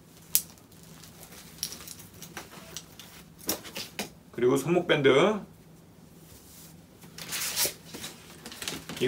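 Cloth and bags rustle as items are packed into a suitcase.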